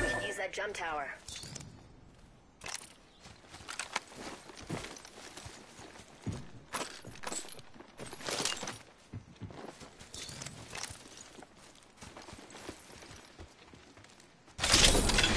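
Footsteps run over grass and a metal floor.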